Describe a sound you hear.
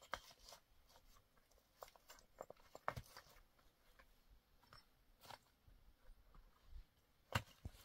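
Small stones clack and scrape as they are moved by hand.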